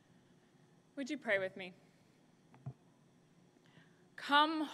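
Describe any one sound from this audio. A young woman speaks calmly into a microphone in a large echoing hall.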